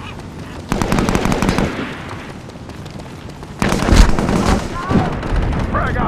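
Rifle shots rattle in rapid bursts.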